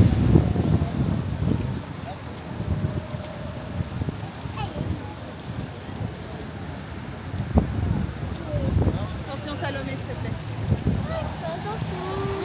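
Car tyres hiss past on a wet road.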